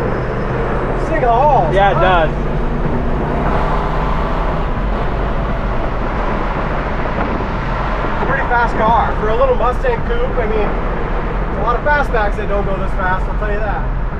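A middle-aged man talks casually close by.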